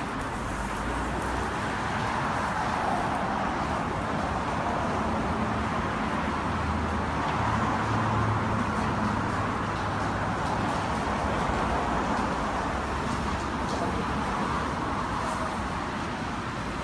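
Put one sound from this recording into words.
Traffic hums steadily on a nearby road.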